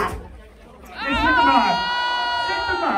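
A young man laughs and shouts nearby.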